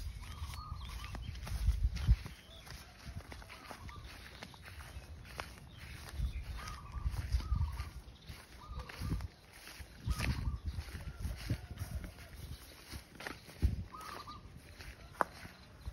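Footsteps crunch through dry grass and straw.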